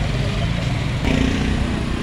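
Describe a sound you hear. A motorcycle rides past.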